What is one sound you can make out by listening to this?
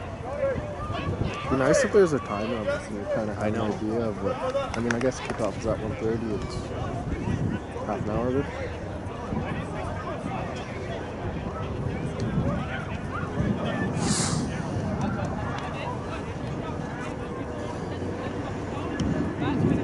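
Rugby players shout to each other in the distance.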